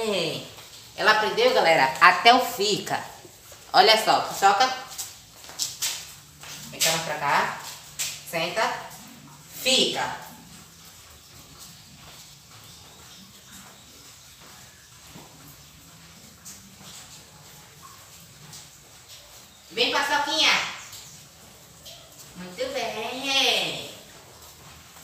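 A teenage boy talks with animation close by.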